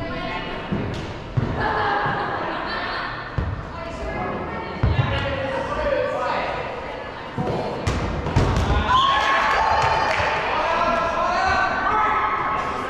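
A ball thumps against the floor and hands.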